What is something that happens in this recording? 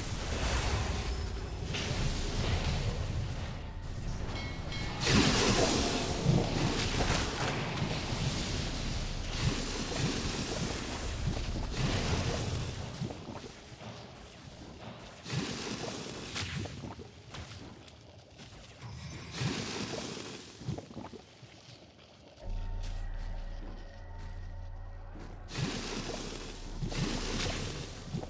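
Game battle effects clash and crackle with bursts of magic.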